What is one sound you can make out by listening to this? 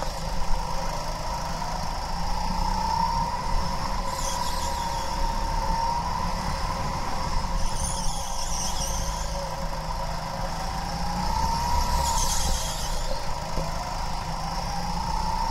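A kart engine buzzes close by, its pitch rising and falling as it speeds up and slows down.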